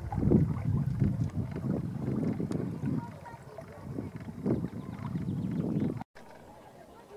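Oars dip and splash softly in the water of a lake.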